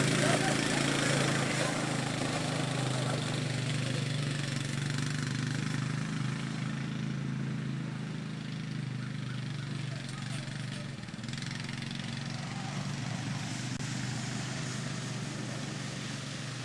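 A car engine hums steadily close by as the car creeps forward.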